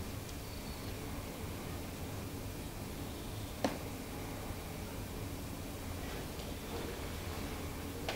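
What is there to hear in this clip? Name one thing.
A dental instrument whirs faintly.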